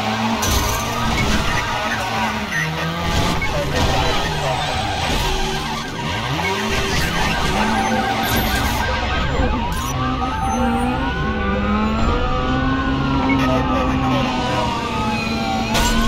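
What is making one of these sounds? Tyres screech as a car skids and drifts.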